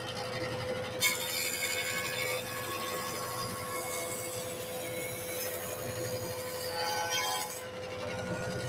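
A jointer cuts wood with a loud whirring rasp.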